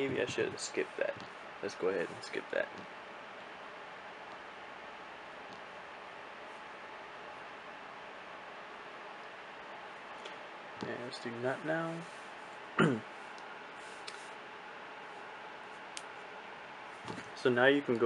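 A finger taps lightly on a phone's touchscreen.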